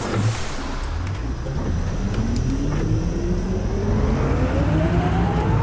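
A bus engine revs up steadily as the bus pulls away.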